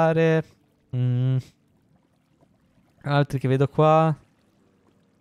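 A young man speaks with animation in short, drawn-out bursts close to a microphone.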